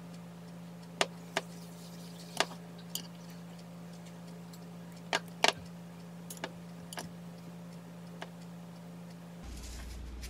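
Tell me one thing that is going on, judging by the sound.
Chopsticks tap and click against a dish.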